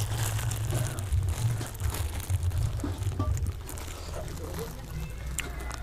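A boy chews food with his mouth close by.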